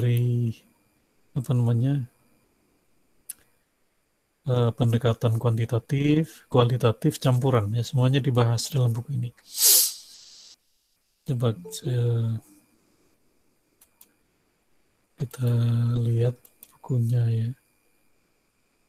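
A man speaks calmly in bursts over an online call.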